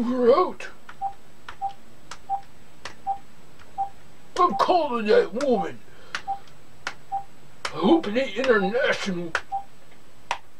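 Short beeps sound from a phone's keypad as buttons are pressed.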